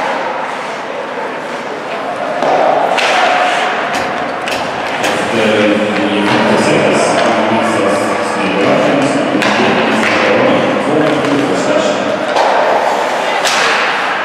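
Skates scrape and hiss across the ice in an echoing rink.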